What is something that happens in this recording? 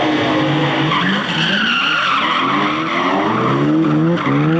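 Tyres squeal on the track.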